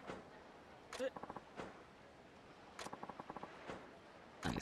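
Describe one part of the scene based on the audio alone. Short electronic blips tick rapidly in bursts.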